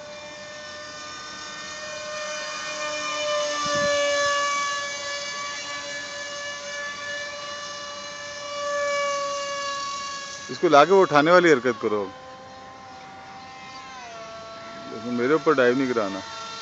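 A small brushless electric motor on a model jet whines overhead, rising and falling in pitch as it flies.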